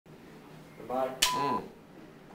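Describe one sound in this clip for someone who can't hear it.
A clapperboard snaps shut with a sharp clack.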